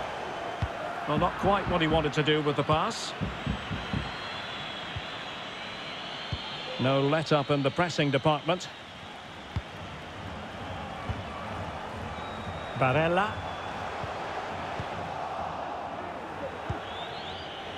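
A large stadium crowd roars and chants steadily in the distance.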